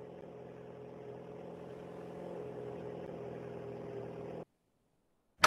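A car engine hums as a car drives by.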